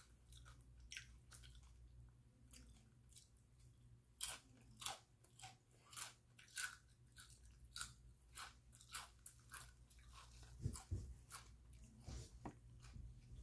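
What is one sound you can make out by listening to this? A plastic snack bag crinkles and rustles close by.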